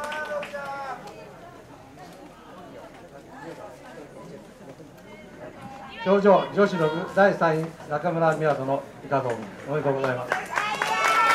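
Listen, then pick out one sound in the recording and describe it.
A man speaks loudly over a loudspeaker.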